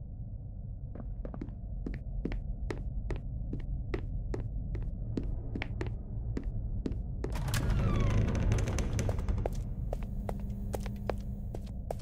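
Footsteps thud quickly and evenly on a hard floor.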